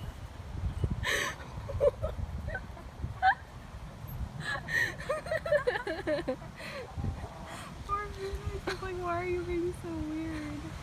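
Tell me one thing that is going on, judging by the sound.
Chickens cluck and chirp softly nearby.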